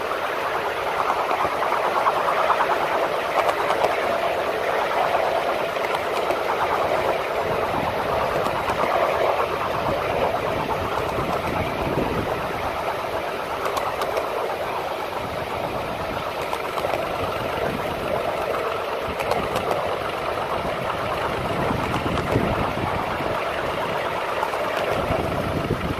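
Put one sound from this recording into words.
Wheels rattle and clack over rail joints.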